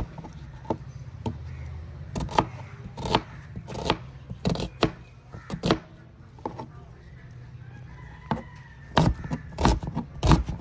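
A knife chops through an onion and taps sharply on a plastic board.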